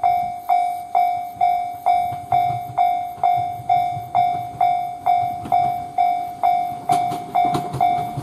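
A railway crossing bell rings in a steady, even rhythm.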